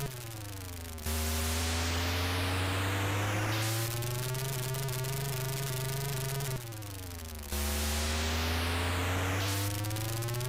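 Game tyres screech with a harsh hiss during a drift.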